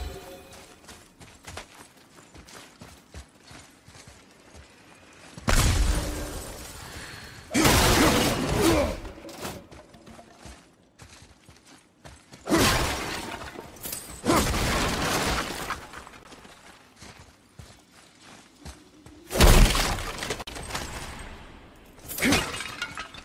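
Heavy footsteps tread on stone.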